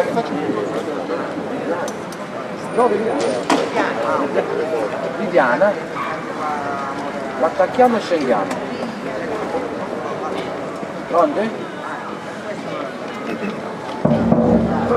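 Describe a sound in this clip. Men and women chatter nearby in a crowd.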